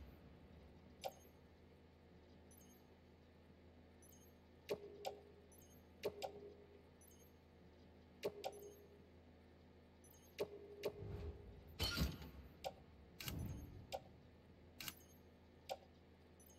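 Short electronic menu clicks sound at irregular intervals.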